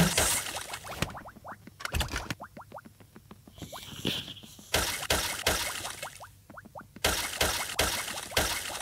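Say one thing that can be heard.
Crunchy digging bursts sound in short rhythmic hits.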